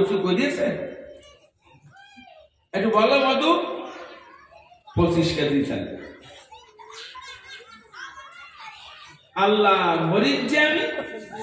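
An elderly man preaches with animation through a microphone and loudspeakers.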